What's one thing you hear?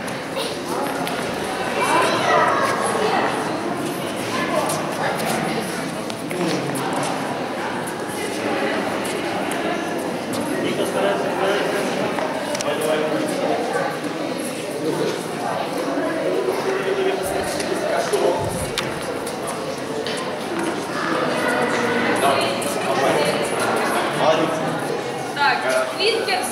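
A man speaks to children in a lively way.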